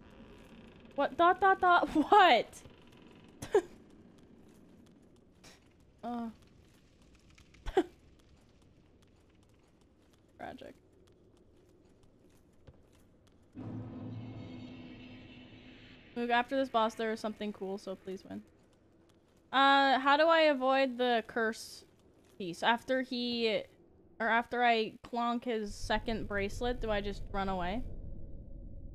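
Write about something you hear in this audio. A young woman talks with animation into a nearby microphone.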